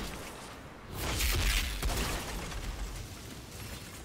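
An explosion booms with a deep rumble.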